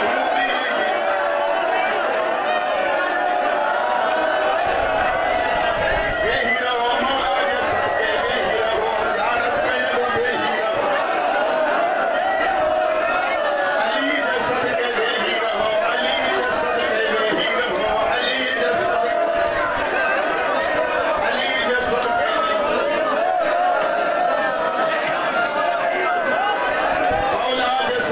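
A large crowd of men chants loudly and rhythmically.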